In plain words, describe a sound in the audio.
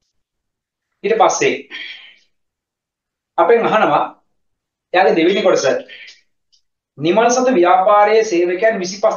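A man speaks calmly and clearly into a close microphone, with short pauses.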